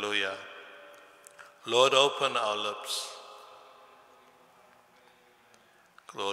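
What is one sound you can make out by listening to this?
An elderly man chants slowly through a microphone, echoing in a large hall.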